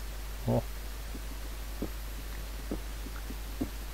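A pickaxe chips at stone blocks in quick, light knocks.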